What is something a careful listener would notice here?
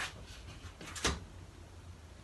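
A wooden frame knocks against a table.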